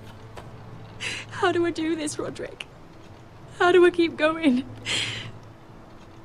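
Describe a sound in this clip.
A young woman speaks sadly and close by, with a trembling voice.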